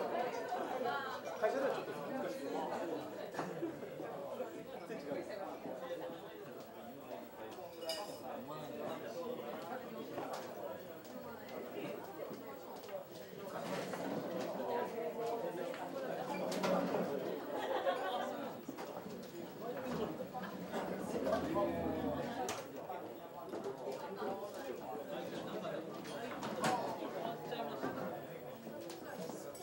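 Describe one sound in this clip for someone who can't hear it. Dishes and cutlery clink now and then.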